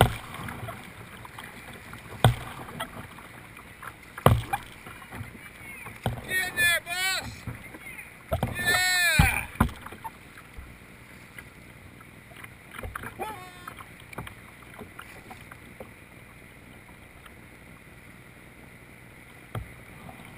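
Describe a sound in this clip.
Water laps and splashes against the hull of a small boat close by.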